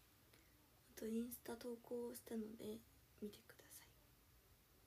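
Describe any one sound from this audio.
A young woman speaks briefly and softly, close by.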